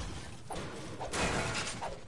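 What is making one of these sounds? A pickaxe strikes a metal object with sharp clangs.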